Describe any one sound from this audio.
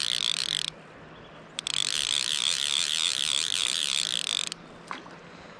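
A fishing reel's drag buzzes loudly in bursts.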